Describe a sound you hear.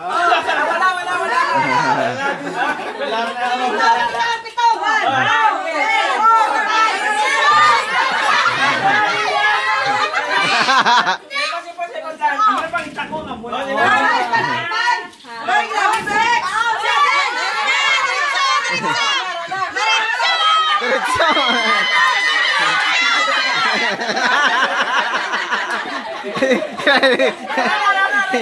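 A crowd of women and children laughs and shouts with excitement close by.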